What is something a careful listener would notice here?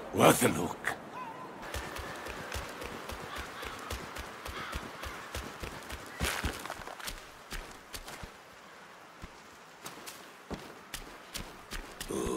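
Footsteps patter quickly on wooden boards.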